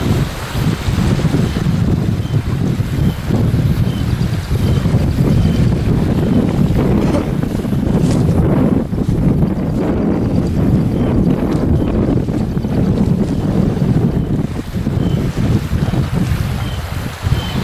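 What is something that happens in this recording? Small waves lap against the shore.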